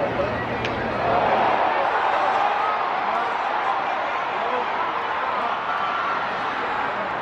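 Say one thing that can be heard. A large stadium crowd cheers loudly in a roaring wash of voices.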